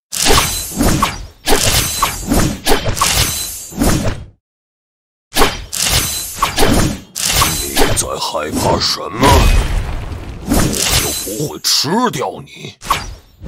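Game battle sound effects clash and burst in quick bursts.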